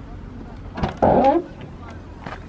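A car's rear hatch swings up with a short rush.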